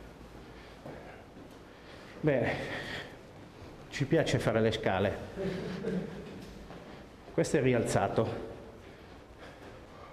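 Footsteps climb concrete stairs.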